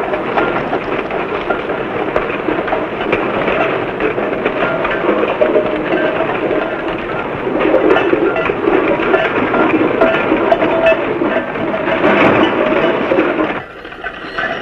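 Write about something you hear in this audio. Tin pots clank and rattle on a moving cart.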